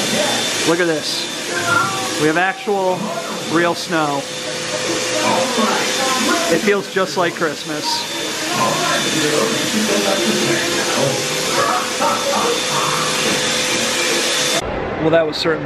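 A snow machine blows out fake snow with a steady hiss.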